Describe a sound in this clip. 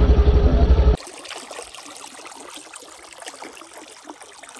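Water trickles gently through a narrow channel.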